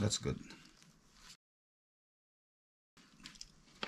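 A metal dipstick scrapes as it slides into its tube.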